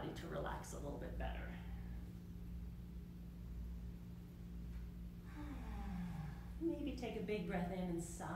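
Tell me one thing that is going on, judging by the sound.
A woman speaks calmly nearby, in a room with a slight echo.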